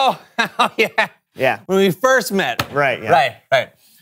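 Two men laugh loudly.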